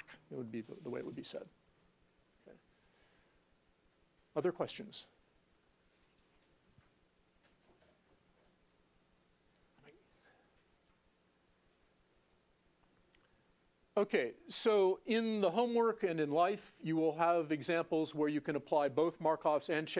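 A middle-aged man lectures into a microphone, with long pauses.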